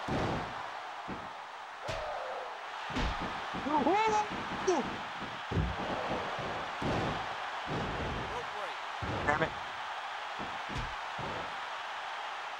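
A video game crowd roars.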